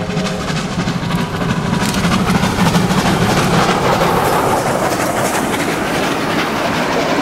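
A steam locomotive chuffs loudly and rhythmically as it passes close by.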